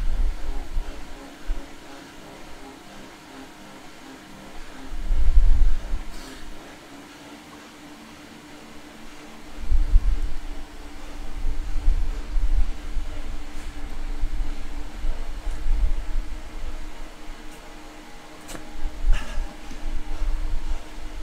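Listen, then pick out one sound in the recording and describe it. A young man breathes heavily.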